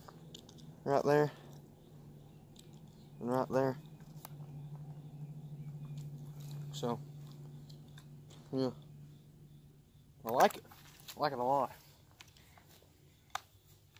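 A rifle's metal parts click and clack as it is handled.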